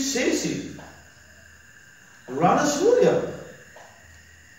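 A man speaks calmly and with animation close by.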